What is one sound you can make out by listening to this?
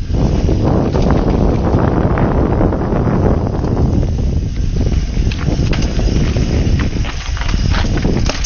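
Wind roars against a microphone.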